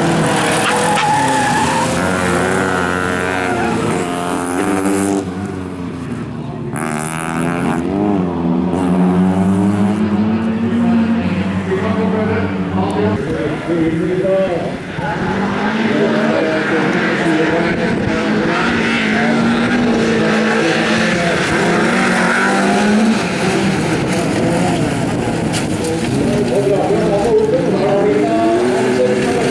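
Tyres skid and scrabble on loose gravel.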